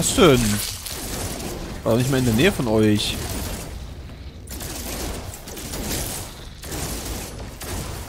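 A laser weapon fires in short bursts.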